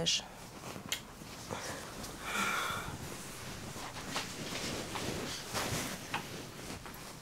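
Bed sheets rustle as someone shifts on a bed.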